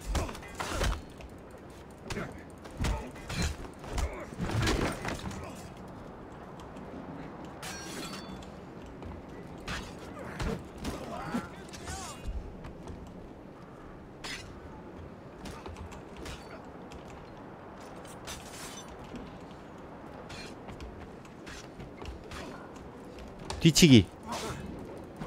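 Heavy blows and thuds land in a scuffle.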